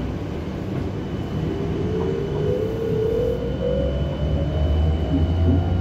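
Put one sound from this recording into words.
A heavy truck engine rumbles nearby.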